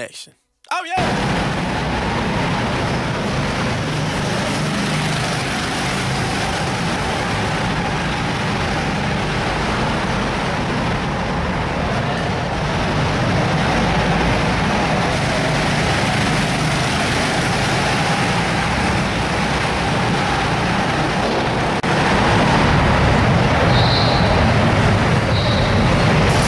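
Go-kart engines buzz and whine around an echoing indoor track.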